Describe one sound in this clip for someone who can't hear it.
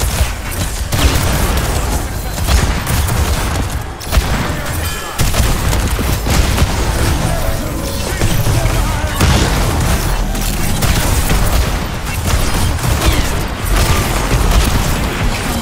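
Explosions thud with deep rumbles.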